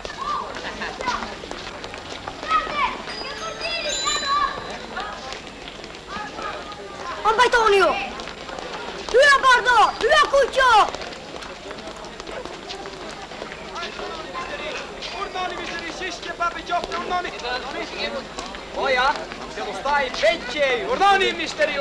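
A hand-pushed cart rattles as its wheels roll over a paved street.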